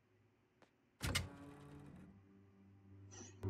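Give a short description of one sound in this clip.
A door opens with a loud rush of sound.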